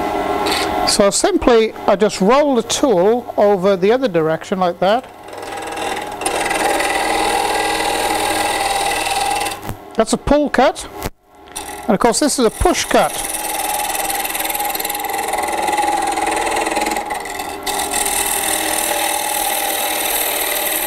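A gouge cuts into a wooden bowl blank spinning on a wood lathe.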